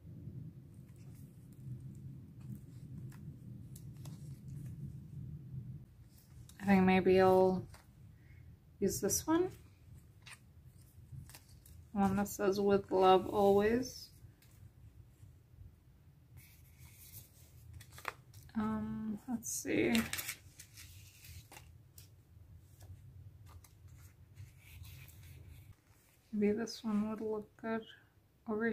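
Plastic sticker sheets rustle and crinkle as they are handled.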